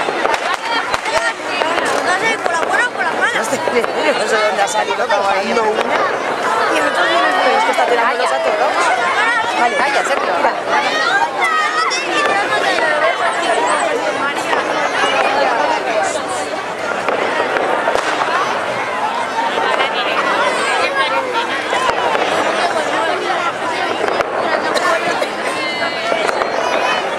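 A bonfire of wooden figures crackles.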